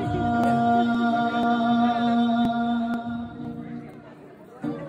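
An acoustic guitar rings out with sustained chords in a large echoing hall.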